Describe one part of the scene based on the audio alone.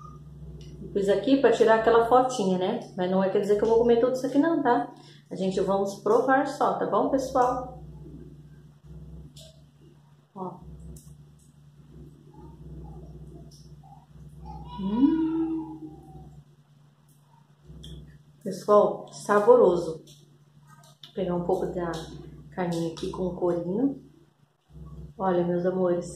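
A woman talks closely and with animation.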